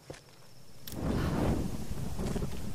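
A torch bursts into flame with a whoosh.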